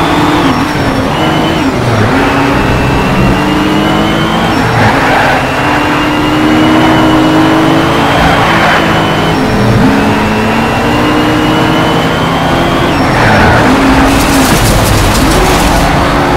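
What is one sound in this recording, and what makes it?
A racing car engine roars, its pitch climbing and dropping as gears shift.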